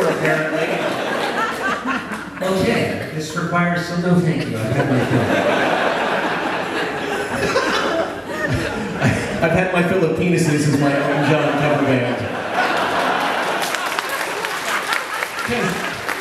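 An acoustic guitar is strummed through a loudspeaker.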